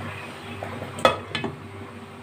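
A glass lid clinks down onto a pan.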